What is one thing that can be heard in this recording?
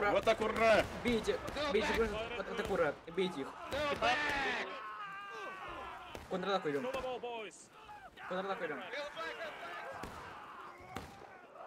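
Rifle shots crack now and then.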